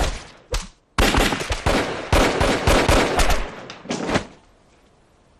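A pistol fires a rapid burst of loud shots that echo.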